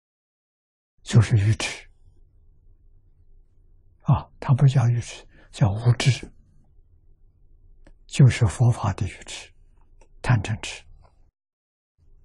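An elderly man speaks calmly and slowly into a close microphone, with pauses.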